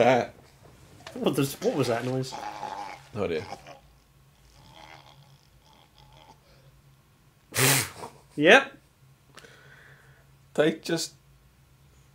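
A man grunts and strains.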